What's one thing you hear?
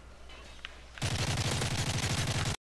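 An automatic rifle fires in a rapid burst.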